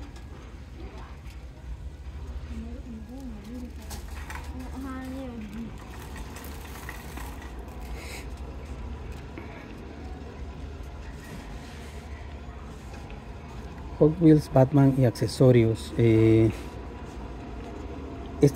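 A shopping cart rolls and rattles over a smooth floor.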